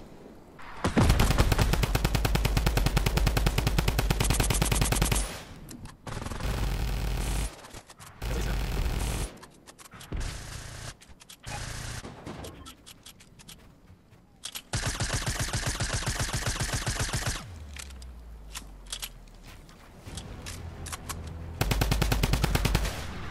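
Rapid gunfire rattles in bursts in a video game.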